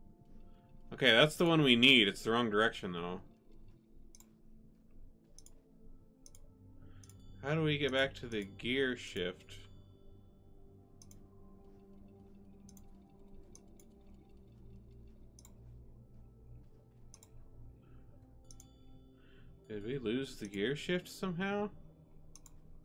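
A man speaks into a microphone in short bursts, with animation.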